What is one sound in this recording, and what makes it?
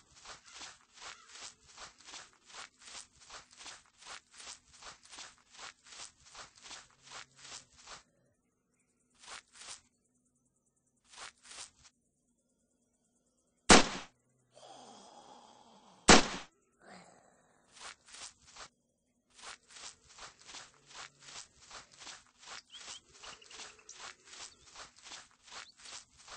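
Footsteps tramp steadily across grass.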